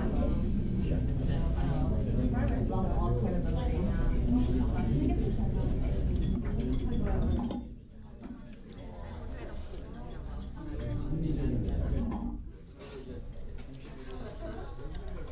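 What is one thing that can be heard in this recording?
A young woman talks calmly and close to the microphone.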